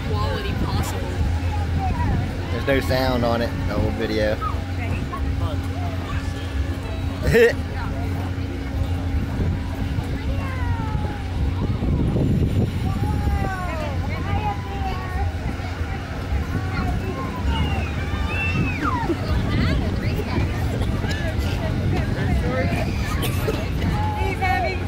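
A ride's motor hums steadily.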